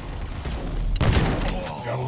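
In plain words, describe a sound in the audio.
An automatic rifle fires in a video game.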